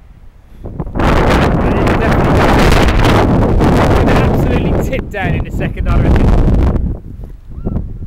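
Wind blusters loudly outdoors.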